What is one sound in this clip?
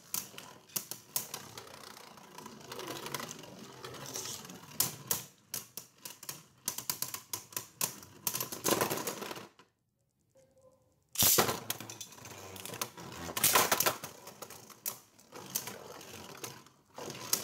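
A spinning top whirs and clatters against the sides of a plastic bowl.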